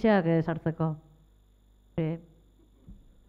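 An older woman speaks into a microphone.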